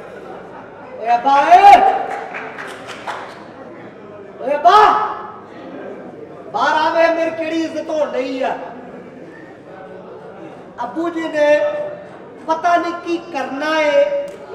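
A man speaks loudly and with animation, heard through a microphone.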